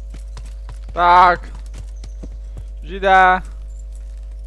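A horse whinnies twice.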